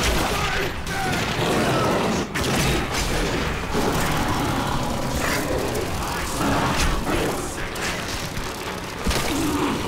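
A creature growls and roars.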